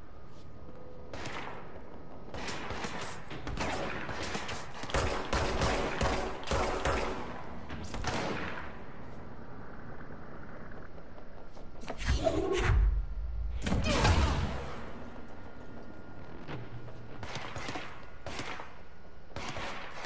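A pistol fires repeated sharp shots.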